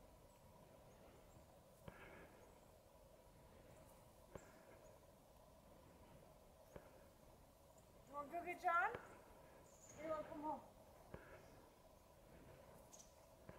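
A dog burrows and snuffles in soft snow.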